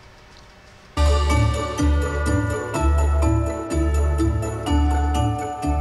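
Christmas music plays from a small loudspeaker.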